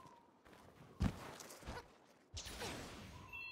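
A heavy blade swings and slashes with a whoosh.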